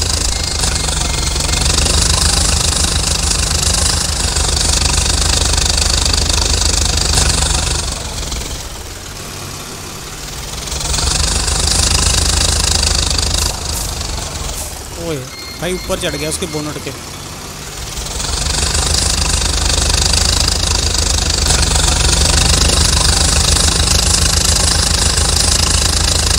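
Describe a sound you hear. A tractor engine roars loudly.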